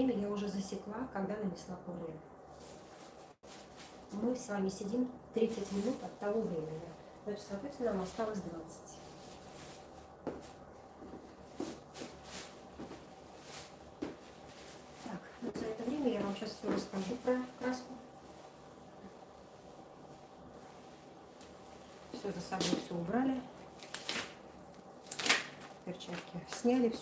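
A middle-aged woman talks calmly nearby.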